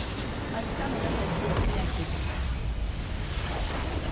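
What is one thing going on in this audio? A base structure explodes with a deep boom.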